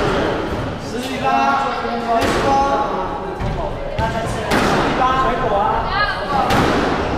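A man talks briefly in an echoing room.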